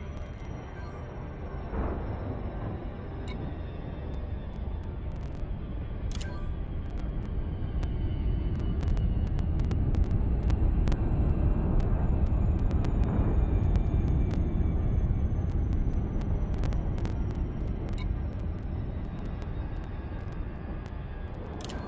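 A spacecraft engine rumbles low and steadily, swelling and then easing off.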